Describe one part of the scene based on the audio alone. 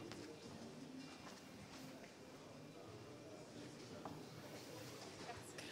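Footsteps shuffle on a wooden floor.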